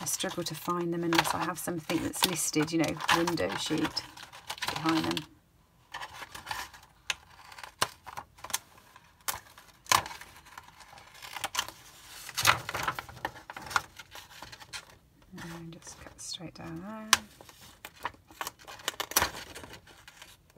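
A stiff plastic sheet crackles as it is handled.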